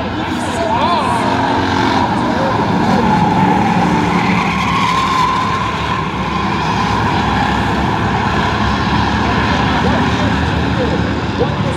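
Car engines whine and change pitch as drivers shift and accelerate.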